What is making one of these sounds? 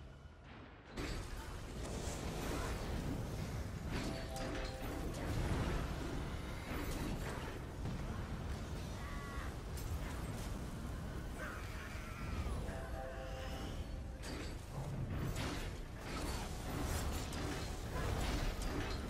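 Game spells and blasts boom and crackle in a dense, constant battle din.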